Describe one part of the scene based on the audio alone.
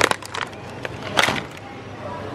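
Items rattle onto a metal wire cart.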